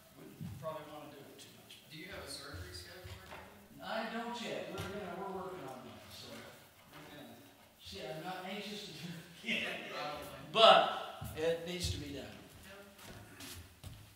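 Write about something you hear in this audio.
An elderly man speaks calmly through a microphone in a large echoing room.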